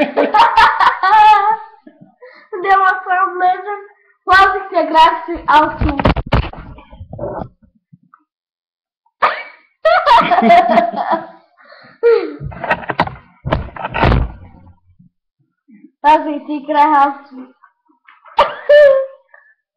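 A young girl laughs loudly, close by.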